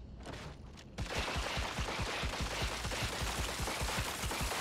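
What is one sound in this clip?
Sparks crackle and hiss from a damaged robot.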